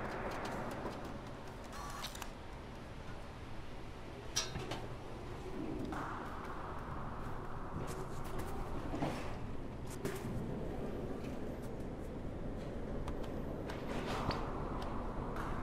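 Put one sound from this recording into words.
A cat's paws patter softly across hard surfaces.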